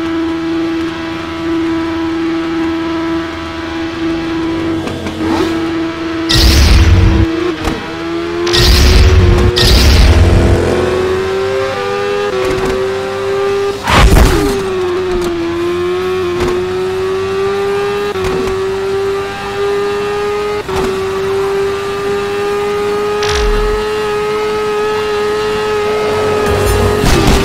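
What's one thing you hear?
A motorcycle engine drones steadily and rises in pitch as it speeds up.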